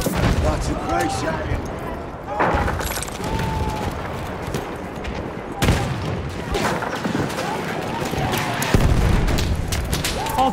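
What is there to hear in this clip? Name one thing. Footsteps crunch over loose stones and rubble.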